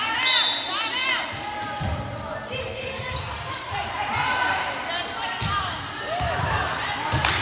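Spectators murmur and cheer in the background.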